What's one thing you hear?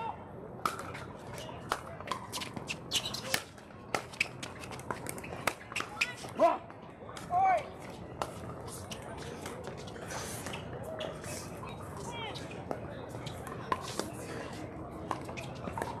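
Paddles hit a plastic ball with sharp, hollow pops outdoors.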